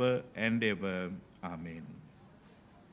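A man sings a short chant through a microphone in an echoing hall.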